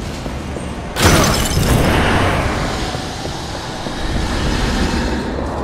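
A magical energy blast whooshes loudly.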